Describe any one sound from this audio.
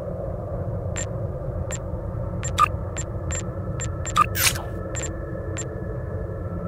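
Short electronic menu clicks sound now and then.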